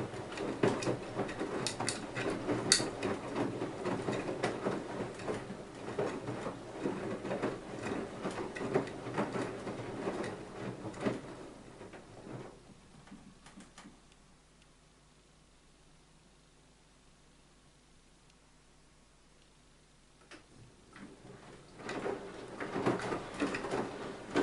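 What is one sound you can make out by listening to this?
Water sloshes and splashes inside a washing machine drum as it turns.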